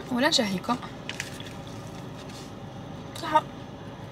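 A young woman chews food close by.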